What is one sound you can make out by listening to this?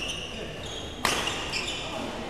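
A racket smacks a shuttlecock once, loud and sharp.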